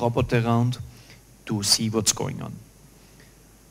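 A man speaks into a microphone, heard through a loudspeaker.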